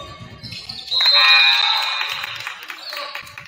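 A referee blows a shrill whistle in an echoing gym.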